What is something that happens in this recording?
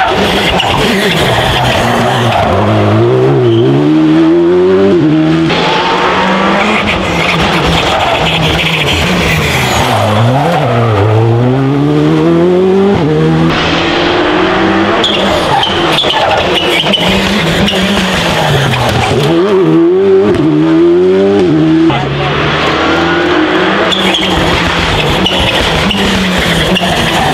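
Rally car engines roar and rev hard, rising and falling in pitch.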